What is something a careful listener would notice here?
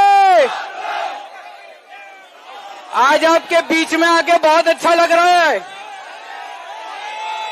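A crowd cheers and chants outdoors.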